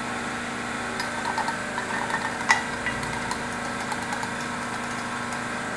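A ratchet wrench clicks in short bursts.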